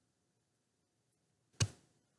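A hand knocks softly against the microphone.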